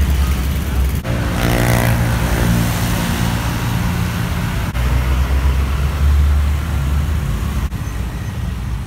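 A truck engine drones close by.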